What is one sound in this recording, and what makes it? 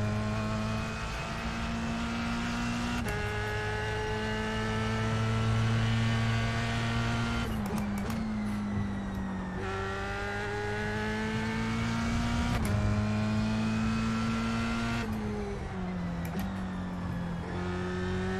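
A racing car engine roars steadily, its pitch climbing and dropping sharply with each gear change.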